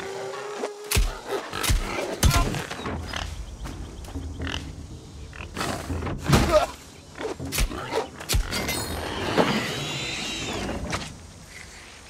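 A wild boar squeals and grunts.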